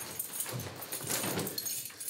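A man flings a bag down with a thump.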